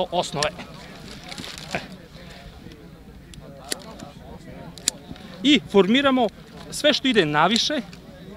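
Pruning shears snip a branch.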